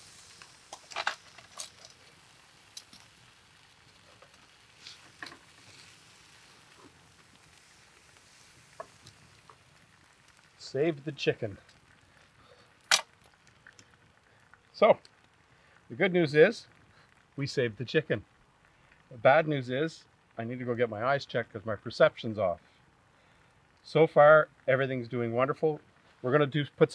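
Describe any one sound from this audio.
Fire crackles softly.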